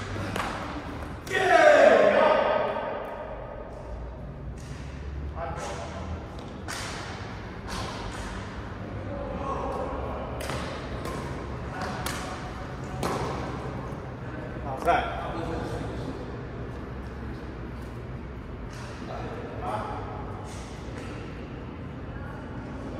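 Badminton rackets strike a shuttlecock again and again, echoing in a large hall.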